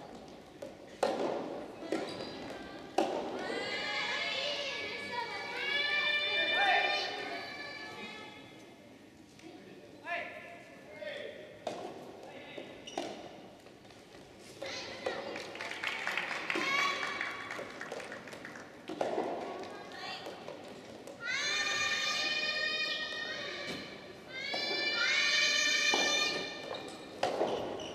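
A racket strikes a ball with sharp pops in an echoing hall.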